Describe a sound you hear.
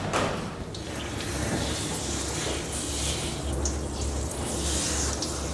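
Water sprays steadily from a shower head.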